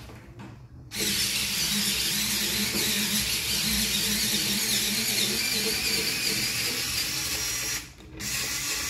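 A small cordless electric screwdriver whirs as it drives a screw.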